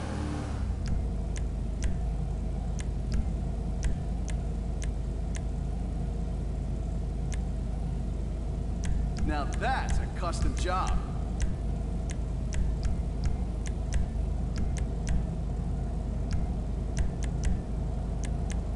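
A muscle car engine idles with a low rumble.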